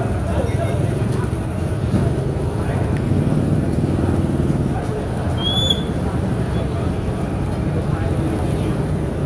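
An oyster omelette sizzles and crackles in a hot wok.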